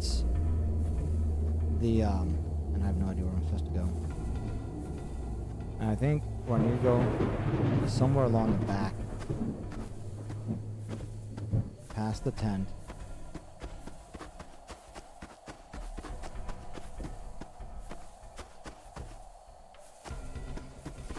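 Footsteps crunch steadily over dry leaves.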